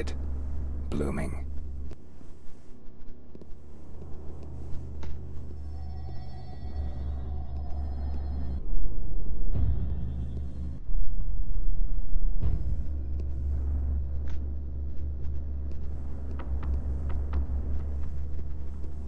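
Soft footsteps tap on a hard floor.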